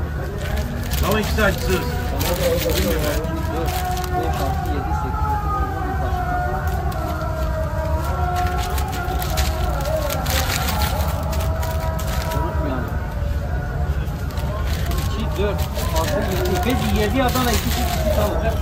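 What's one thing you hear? Paper crinkles as a sandwich is wrapped.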